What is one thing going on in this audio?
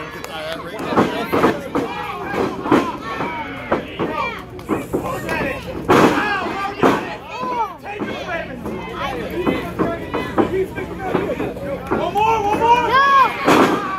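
Wrestlers' bodies slap and thud against each other.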